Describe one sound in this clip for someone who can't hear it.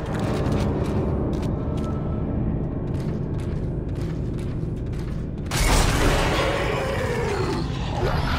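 Heavy metal footsteps clank slowly across a hard floor.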